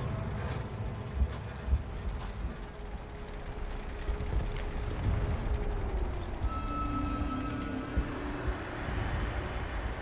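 Warplanes drone overhead.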